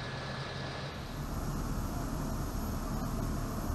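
Fuel rumbles low and steady through a thick hose.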